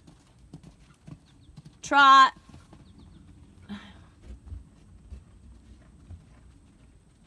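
A horse's hooves thud softly on sand.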